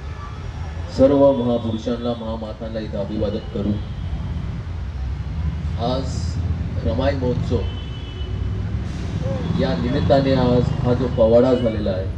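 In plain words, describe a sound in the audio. A young man speaks with animation through a microphone and loudspeakers.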